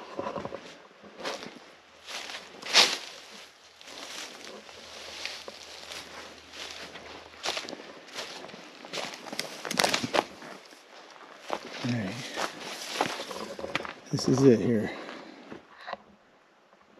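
Footsteps crunch and rustle through dry brush.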